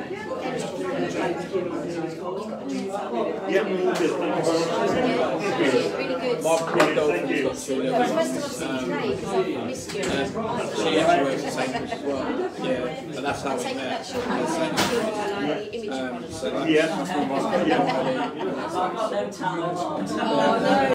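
A man talks loudly and with animation nearby.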